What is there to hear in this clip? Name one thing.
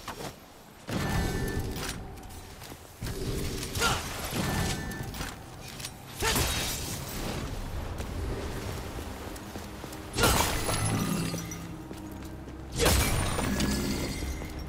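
Heavy blows and slashes strike in sudden, loud bursts.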